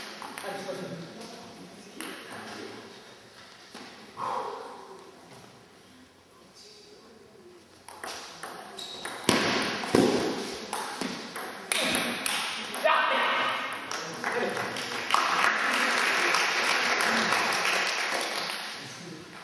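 A ping-pong ball clicks back and forth between paddles and the table.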